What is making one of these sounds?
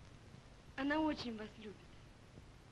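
A young woman speaks a short phrase close by, with feeling.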